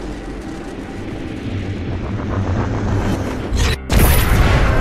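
A swirling energy portal crackles and roars loudly.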